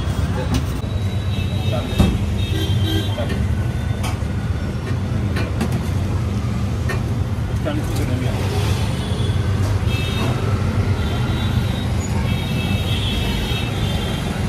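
An adult man talks close to the microphone.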